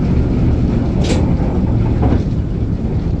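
A train's coupling bangs as the carriages meet.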